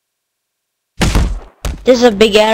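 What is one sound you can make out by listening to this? A body thuds heavily onto the ground.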